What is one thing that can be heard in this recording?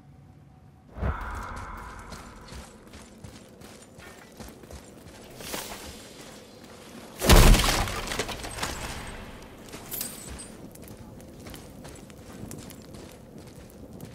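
Heavy footsteps crunch on snow and stone.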